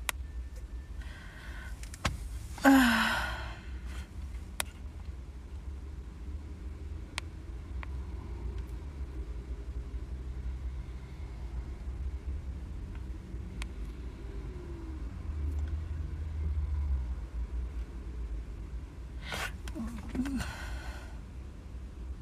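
A young woman speaks briefly and softly close by.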